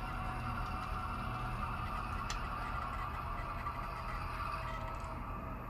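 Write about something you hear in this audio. A model freight train rumbles and clatters steadily along the track.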